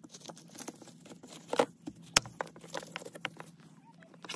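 A gloved hand presses and clicks a plastic box against a wooden board.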